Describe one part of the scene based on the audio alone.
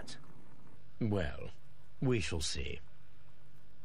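A younger man answers calmly.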